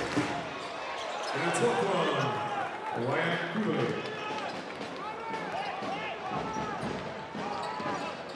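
A crowd cheers throughout a large echoing arena.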